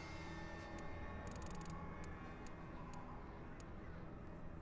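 Short menu clicks tick as a selection moves.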